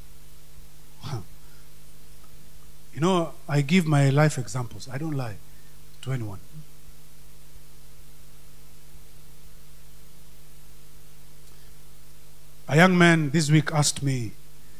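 A man speaks with animation through a microphone, with long pauses.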